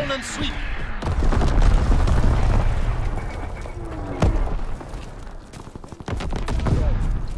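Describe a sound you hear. Distant explosions rumble low and steadily.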